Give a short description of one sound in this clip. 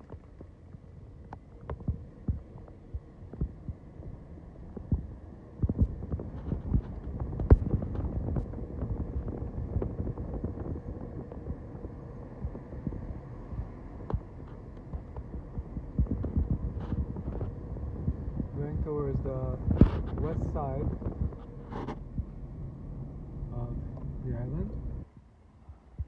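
Tyres rumble and bump along a road.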